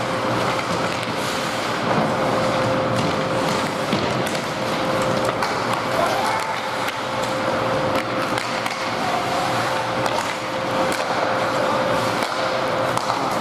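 Echoing noise of a large indoor rink fills the air.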